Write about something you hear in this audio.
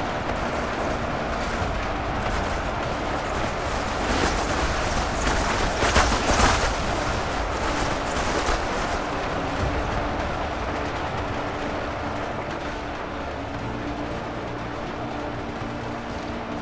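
A vast crowd of soldiers roars in battle.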